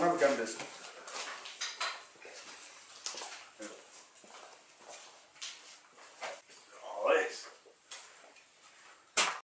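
Footsteps shuffle across a floor.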